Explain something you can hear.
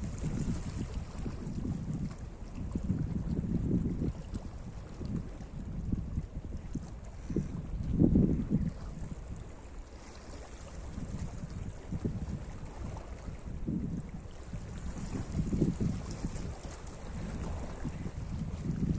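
Small waves lap and wash over rocks along the shore.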